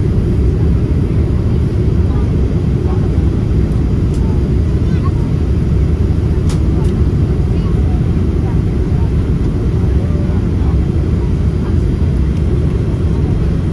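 Turbofan engines of a jet airliner roar, heard from inside the cabin.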